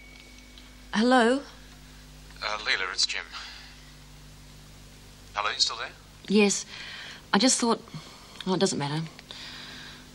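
A woman speaks anxiously into a telephone, close by.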